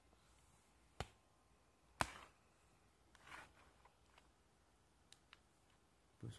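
A hard plastic device knocks and taps as it is handled.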